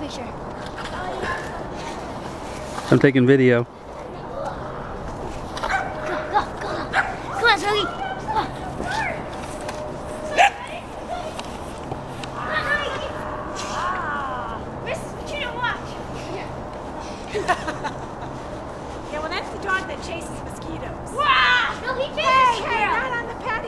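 A child shouts and laughs playfully outdoors.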